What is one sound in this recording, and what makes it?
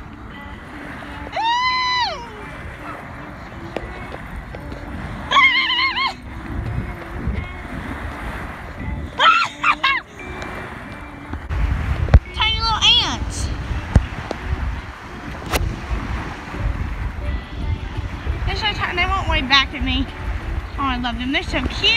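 Small waves wash gently over sand.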